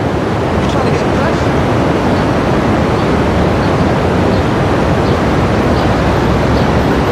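Music plays over a radio.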